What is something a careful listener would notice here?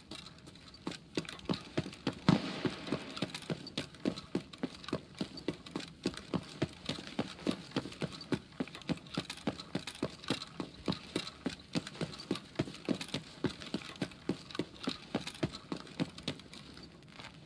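Footsteps run quickly and heavily on a hard floor.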